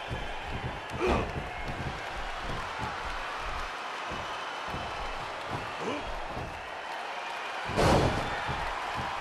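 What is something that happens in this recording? Heavy thuds ring out as bodies slam onto a wrestling ring.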